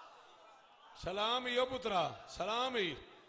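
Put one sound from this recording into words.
A man chants loudly through a loudspeaker.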